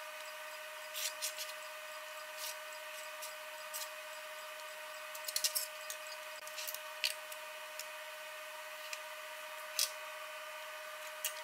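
Metal plates clink and tap against each other as they are handled.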